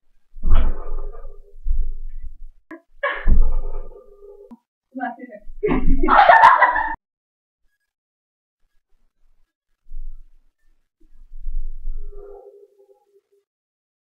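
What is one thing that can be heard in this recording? Young women laugh and shout with excitement nearby.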